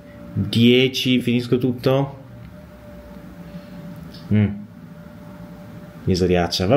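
A young man speaks calmly and close to the microphone, in short bursts with pauses.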